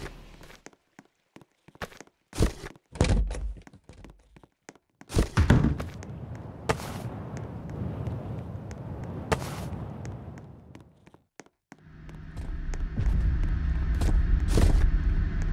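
Footsteps patter across the ground.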